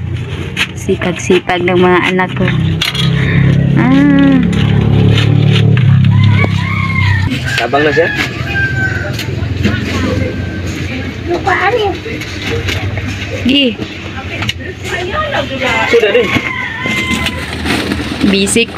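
Young children talk and chatter close by.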